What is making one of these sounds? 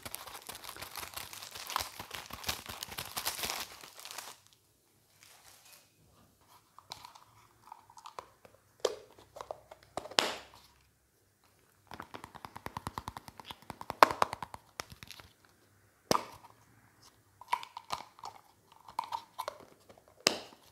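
A young man whispers softly close to a microphone.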